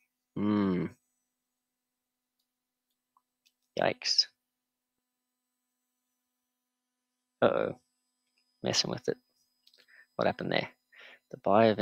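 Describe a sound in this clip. A man speaks in short bursts with pauses, close to a microphone.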